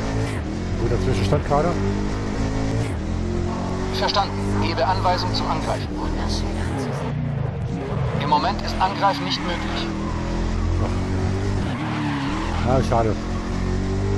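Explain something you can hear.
Tyres squeal through fast corners.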